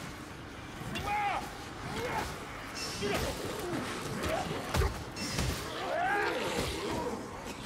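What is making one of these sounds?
Monstrous creatures snarl and shriek close by.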